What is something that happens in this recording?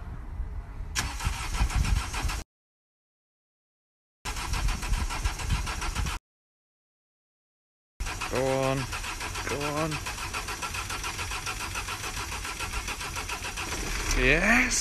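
A van engine cranks over and over without starting.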